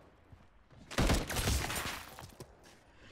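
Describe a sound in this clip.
A loud explosion booms and roars.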